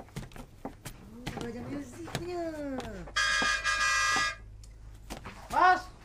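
Wooden loom parts knock and clack sharply.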